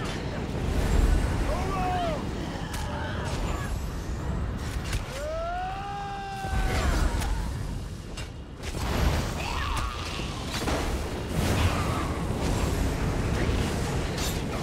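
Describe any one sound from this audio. Fiery blasts explode in quick bursts.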